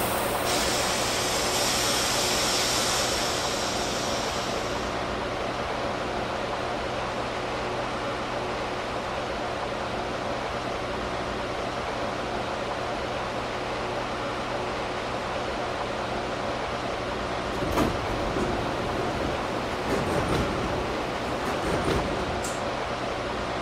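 A subway train hums steadily as it idles at a station.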